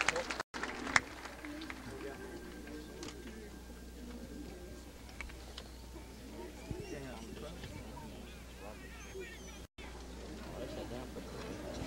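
A crowd murmurs quietly.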